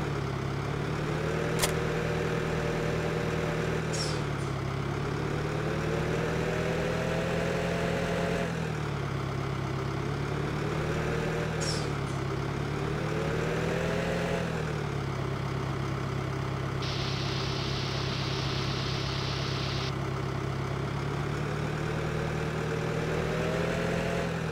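A tractor engine hums steadily, rising and falling in pitch as it speeds up and slows down.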